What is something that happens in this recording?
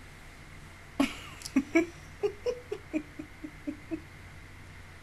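A young woman laughs softly into a close microphone.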